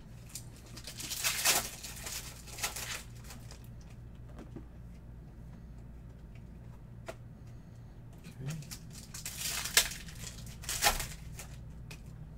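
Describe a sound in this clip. A foil pack rips open with a crinkling rustle.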